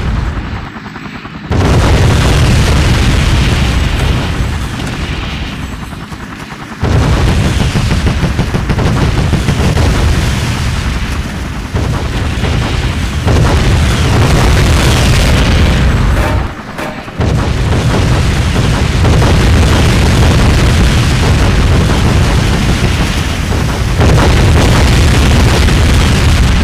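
A video game helicopter's rotor thumps.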